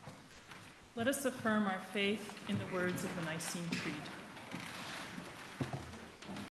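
A woman reads aloud through a microphone in a large echoing hall.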